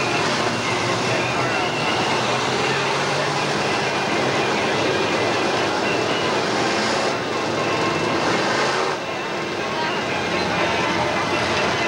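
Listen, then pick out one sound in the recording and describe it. Race car engines roar loudly around a track.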